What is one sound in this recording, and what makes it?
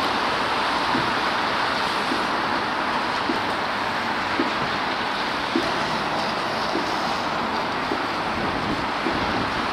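A heavy vehicle's engine idles nearby.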